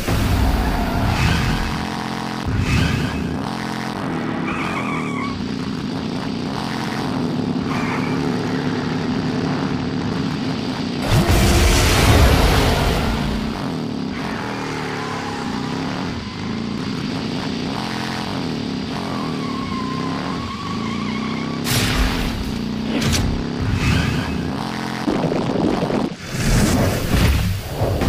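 A racing car's engine hums steadily.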